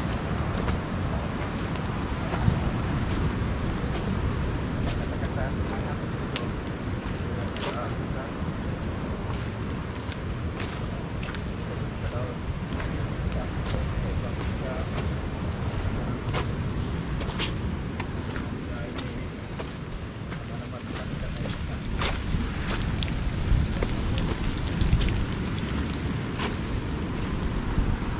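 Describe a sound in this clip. Wind rustles through the leaves outdoors.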